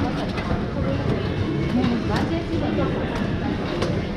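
An elderly man presses buttons on a ticket machine.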